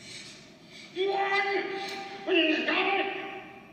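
A man cries out in alarm over loudspeakers in a large hall.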